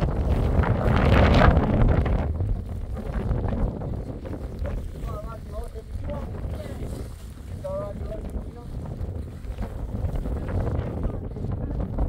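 A plastic tarp rustles and flaps as it is dragged.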